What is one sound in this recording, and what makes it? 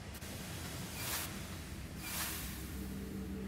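Steam hisses in short bursts.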